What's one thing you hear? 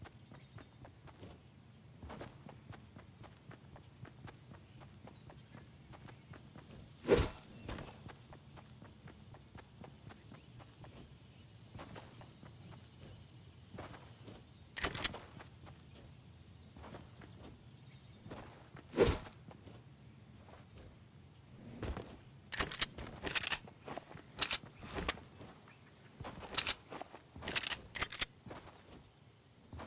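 Footsteps patter quickly on grass.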